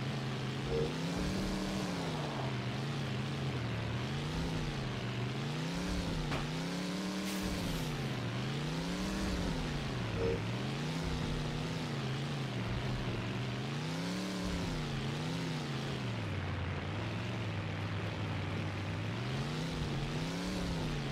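A game car engine revs up and down over and over.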